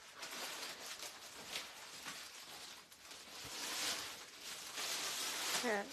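Cloth rustles as it is handled.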